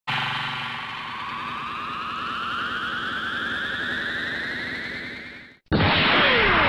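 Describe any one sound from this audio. A humming power-up tone rises steadily in pitch.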